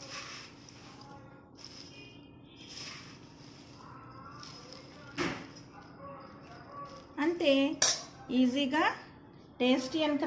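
A spoon scoops puffed rice into a small bowl with a soft rustle.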